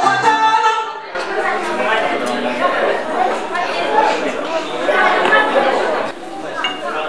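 A man speaks loudly to a gathering.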